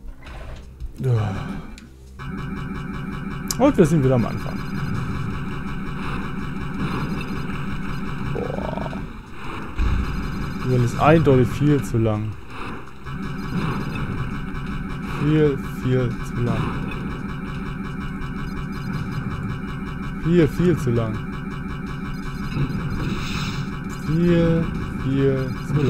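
Laser blasts zap in quick bursts.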